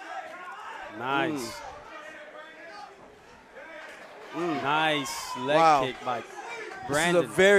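A crowd of spectators shouts and cheers loudly.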